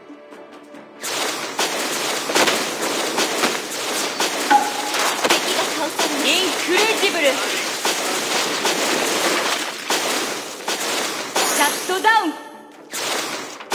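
Game combat effects clash and burst with magical whooshes.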